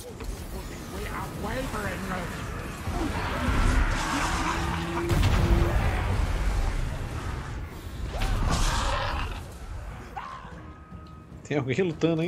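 Battle sounds roar with blasts and clashing.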